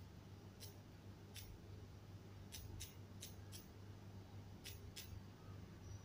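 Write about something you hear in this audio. Soft keyboard clicks tick with each key tap.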